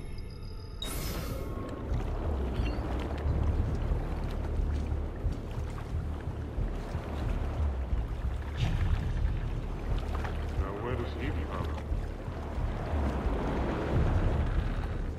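A low rumble of wind and water runs steadily.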